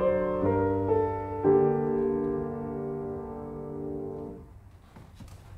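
A grand piano plays a melody that ends on a ringing chord.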